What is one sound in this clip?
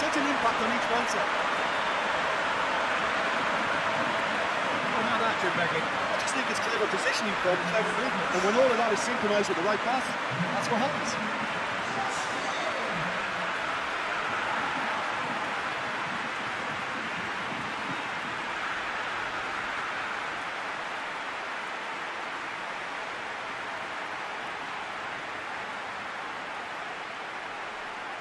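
A large stadium crowd roars and cheers steadily, slowly fading.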